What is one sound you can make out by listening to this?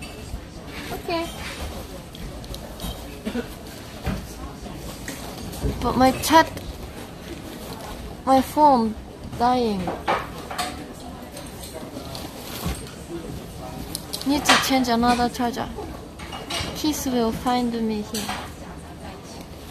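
A young woman speaks close to the microphone in a light, animated voice.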